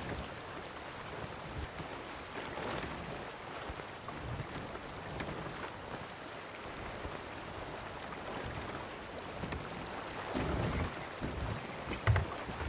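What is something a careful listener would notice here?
Ocean waves wash steadily against a wooden ship's hull.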